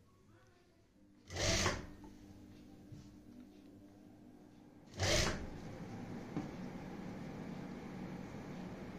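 A sewing machine hums as it stitches.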